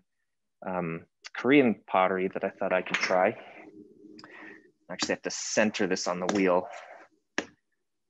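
A man talks calmly and with animation, close to a microphone.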